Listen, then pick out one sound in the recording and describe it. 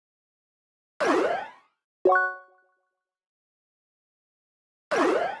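Electronic whooshes sweep.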